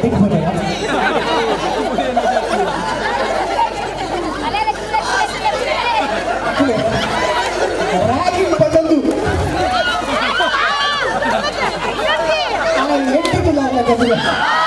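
A crowd of men and women outdoors chatter, shout and cheer with animation.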